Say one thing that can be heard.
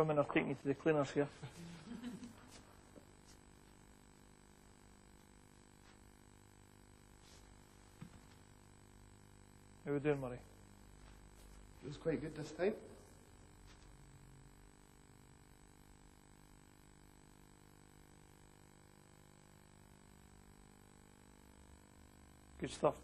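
A man speaks calmly in a large room.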